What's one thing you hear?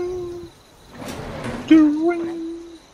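Metal elevator doors slide open with a short rumble.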